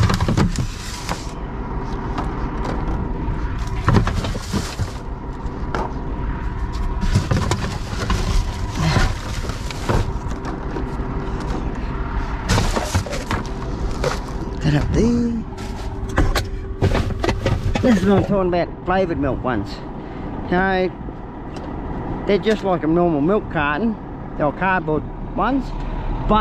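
Plastic bottles crackle and knock as they are dropped into a bin.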